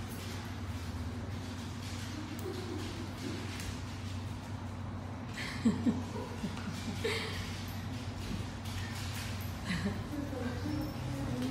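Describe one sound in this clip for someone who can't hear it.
A dog pants softly nearby.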